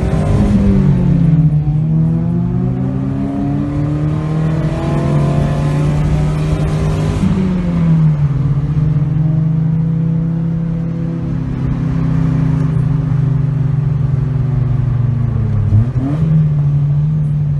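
A car engine drones while cruising, heard from inside the cabin.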